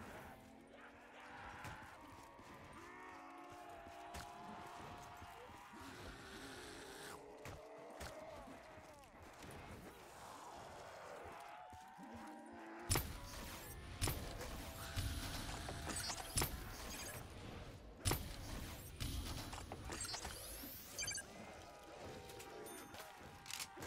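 Zombies groan and moan.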